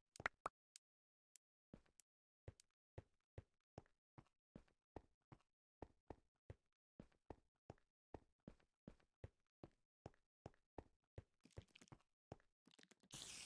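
Footsteps tap steadily on a hard stone floor.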